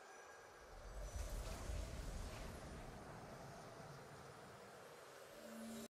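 A triumphant game fanfare swells up and slowly fades.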